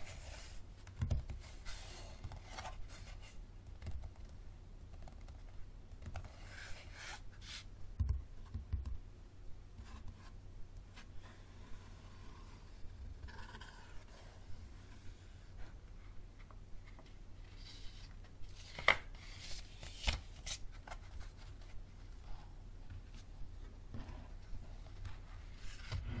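A book knocks softly on a table.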